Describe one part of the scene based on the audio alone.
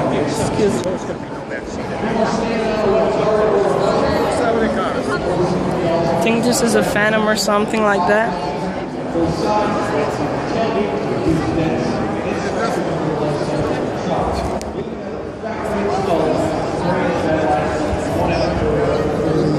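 A crowd of people chatters all around in a large echoing hall.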